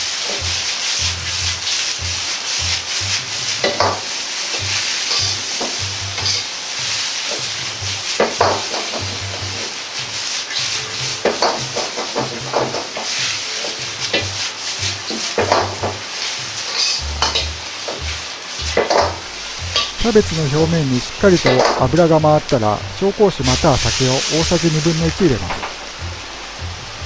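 Food sizzles and hisses in a hot wok.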